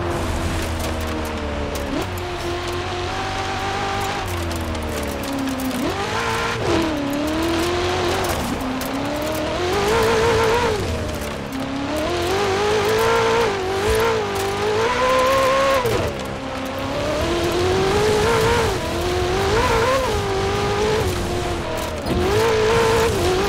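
Tyres crunch and slide over a wet dirt track.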